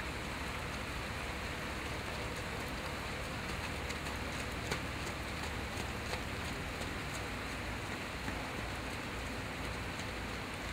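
A horse's hooves thud softly on wet mud at a walk.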